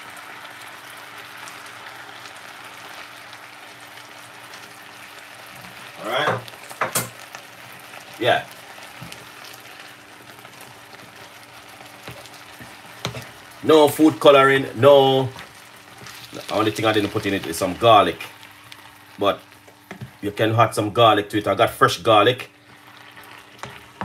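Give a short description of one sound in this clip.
Food sizzles and bubbles gently in a pan.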